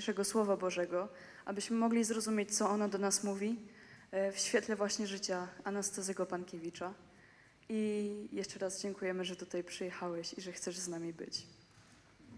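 A young girl speaks through a microphone, echoing in a large hall.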